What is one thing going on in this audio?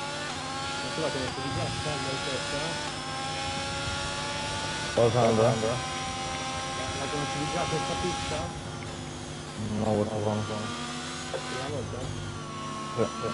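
A racing car engine whines steadily, rising in pitch and dropping with each gear change.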